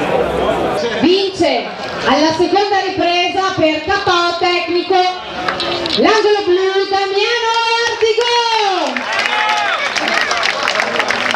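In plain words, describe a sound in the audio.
A man announces loudly over a loudspeaker, drawing out his words.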